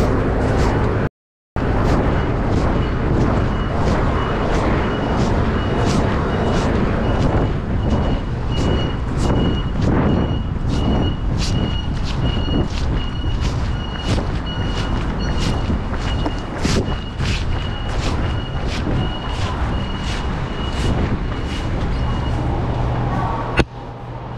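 Clothing rustles against a microphone close by.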